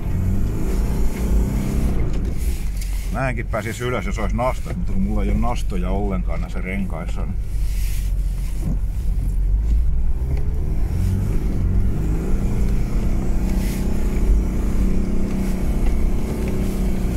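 A vehicle engine rumbles and drones steadily up close.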